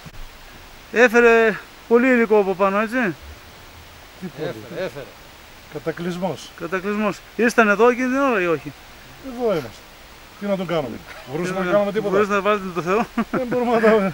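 An elderly man speaks with animation close by, outdoors.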